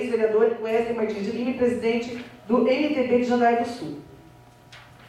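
A woman speaks steadily through a microphone and loudspeakers.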